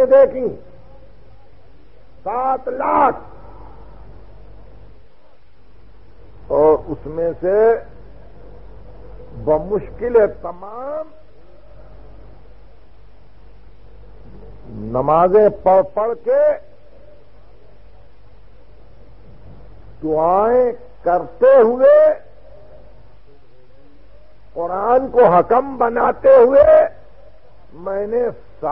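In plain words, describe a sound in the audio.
A man recites in a melodic, chanting voice, in short phrases with pauses between them.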